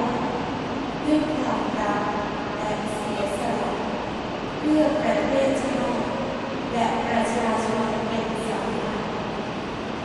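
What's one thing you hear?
A man's voice speaks through loudspeakers, echoing across a large open space.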